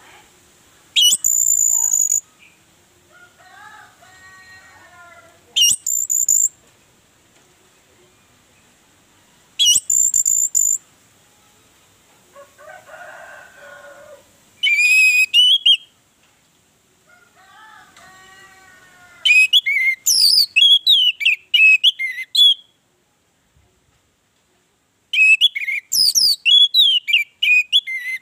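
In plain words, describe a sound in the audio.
An orange-headed thrush sings in loud bursts of varied, high whistled phrases.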